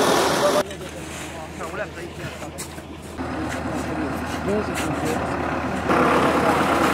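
A crowd of men murmurs outdoors.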